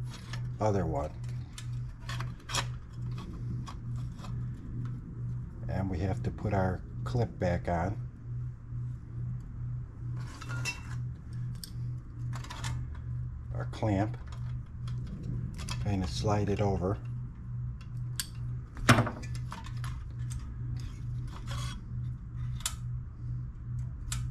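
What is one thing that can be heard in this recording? Small metal engine parts click and clink as hands work on them.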